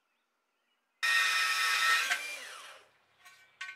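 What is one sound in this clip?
An angle grinder whines loudly for a moment.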